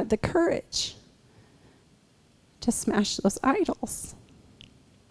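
A woman speaks into a microphone over loudspeakers in a large room, in short bursts with pauses.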